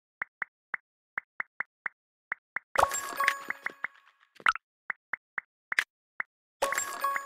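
Short game menu clicks tick in quick succession.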